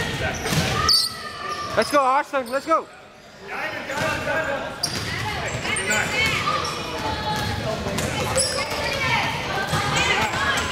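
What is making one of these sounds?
Children and adults chatter and call out in a large echoing hall.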